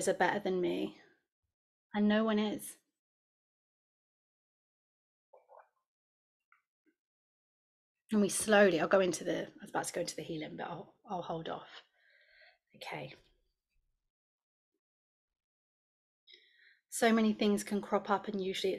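A young woman talks calmly over an online call.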